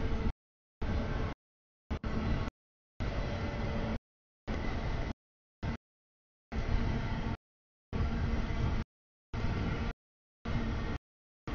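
A level crossing bell rings steadily.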